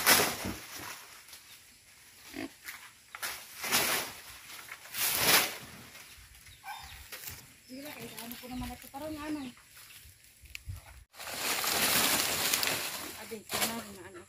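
Leaves rustle in gusts of wind outdoors.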